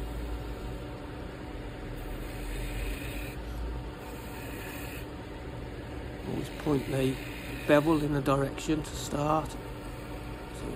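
A wood lathe spins with a steady hum.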